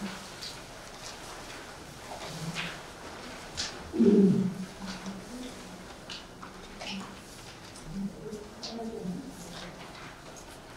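An elderly man speaks calmly from a distance in a room with some echo.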